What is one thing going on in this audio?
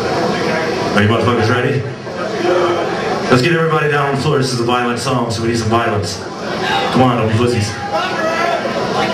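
A man growls and screams into a microphone over the band.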